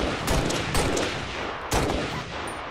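Sniper rifle shots boom loudly and echo.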